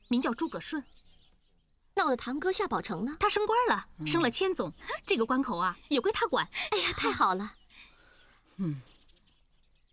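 Young women talk and laugh together with animation.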